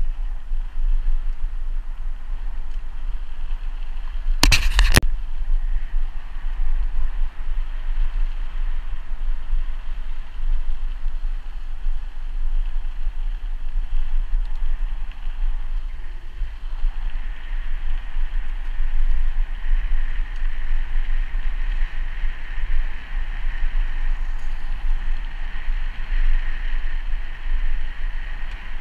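Bicycle tyres roll steadily over a gravel path.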